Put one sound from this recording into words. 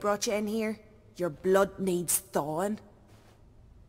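A woman speaks firmly and close by.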